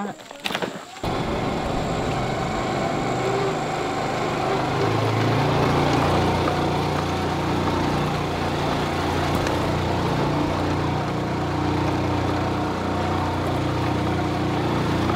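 A motorbike engine runs steadily.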